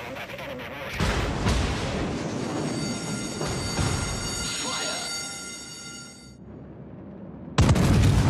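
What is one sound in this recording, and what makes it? Shells explode with rumbling bursts.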